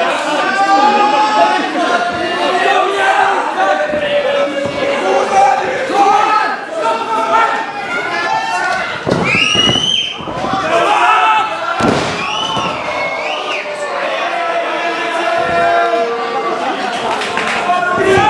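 A crowd cheers and chants loudly in a large echoing hall.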